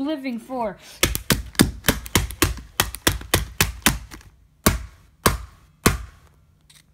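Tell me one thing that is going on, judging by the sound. A wooden stick strikes a mobile phone again and again with sharp knocks.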